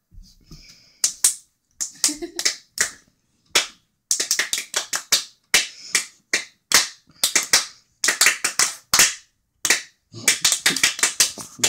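Two young girls clap hands together in a quick rhythm.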